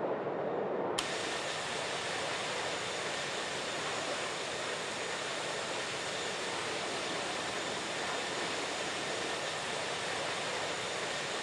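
A jet airliner's engines roar with a brighter, hissing rush from outside.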